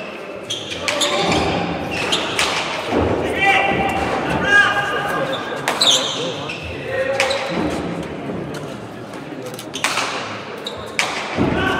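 A ball smacks hard against a wall and bounces, echoing in a large hall.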